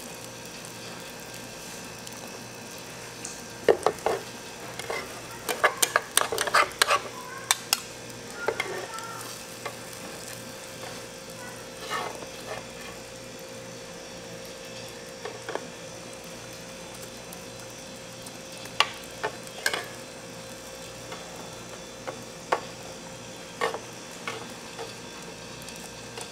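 Eggs sizzle softly in a hot pan.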